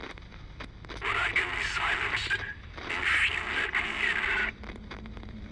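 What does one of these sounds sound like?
A man's distorted voice crackles through a radio loudspeaker.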